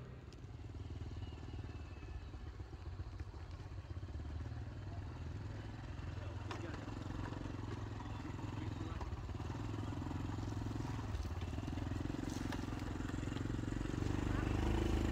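A motorbike engine hums in the distance and grows louder as it approaches.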